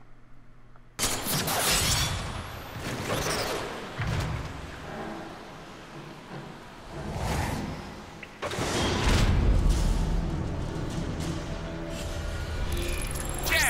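Heavy metal clanks and thuds ring out.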